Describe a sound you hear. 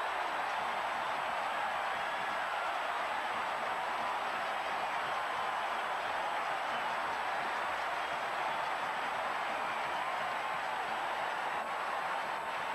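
A large crowd roars steadily in an open stadium.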